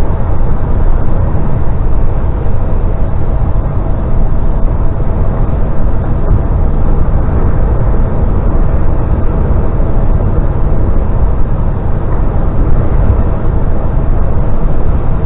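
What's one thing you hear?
A vehicle's engine hums steadily with a low rumble while driving.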